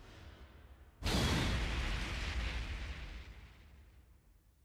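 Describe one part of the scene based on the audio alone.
A deep explosion booms with a rushing whoosh, then slowly fades.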